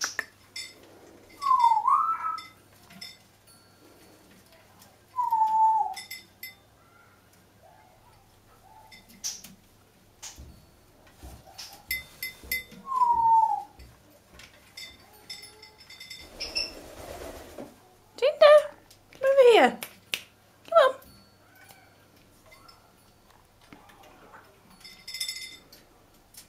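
A parrot's beak clicks and knocks against a wooden toy.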